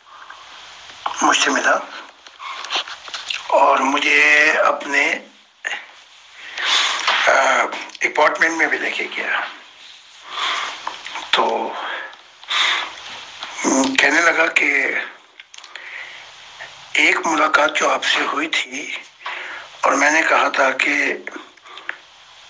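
An elderly man speaks calmly and steadily into a microphone, close by.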